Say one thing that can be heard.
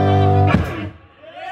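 A man sings a held note close to a microphone.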